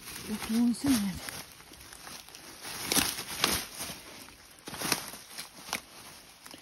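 Leaves and stems rustle and brush as someone pushes through dense undergrowth.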